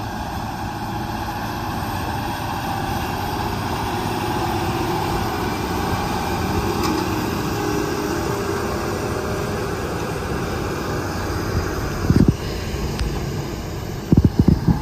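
A heavy tractor engine rumbles steadily close by.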